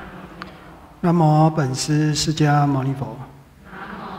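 A middle-aged man chants in a slow, drawn-out voice through a microphone.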